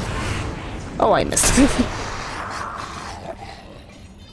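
A loud magical blast roars and hisses.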